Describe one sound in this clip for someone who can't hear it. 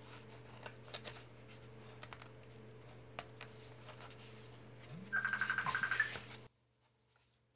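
Pages of a booklet rustle and flip.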